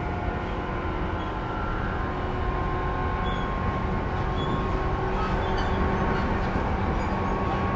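Train wheels hum and whine on the rails.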